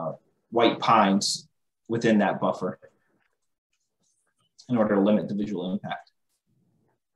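A man talks calmly through an online call microphone, in short bursts with pauses.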